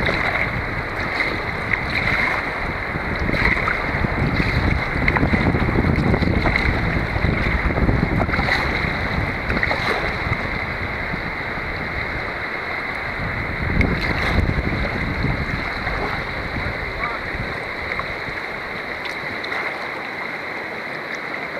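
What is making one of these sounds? Water laps and splashes against a small boat's hull.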